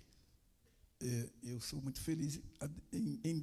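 A second man speaks calmly through a microphone.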